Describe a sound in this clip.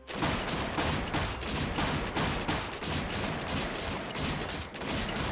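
Game combat effects strike in quick, steady bursts.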